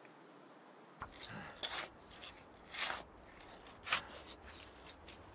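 A saw cuts through meat in rough strokes.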